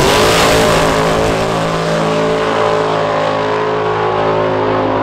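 Loud race car engines roar at full throttle and slowly fade into the distance.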